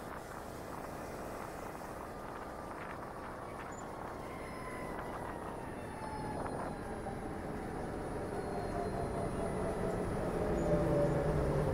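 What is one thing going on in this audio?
A motorcycle engine hums steadily and grows louder toward the end.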